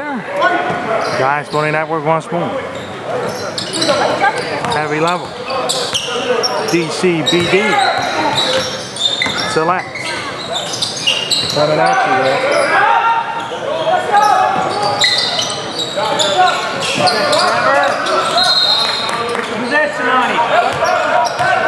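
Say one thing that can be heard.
Sneakers squeak sharply on a hardwood floor in a large echoing gym.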